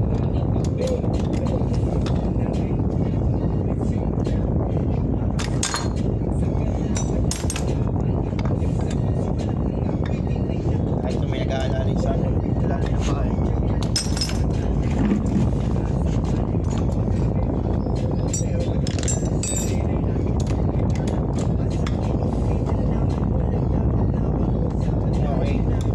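Metal tools clink and tap against metal.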